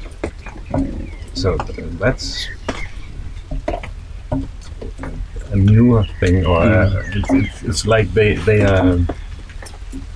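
A man speaks calmly and up close.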